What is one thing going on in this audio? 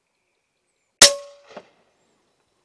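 A rifle fires a single loud shot outdoors.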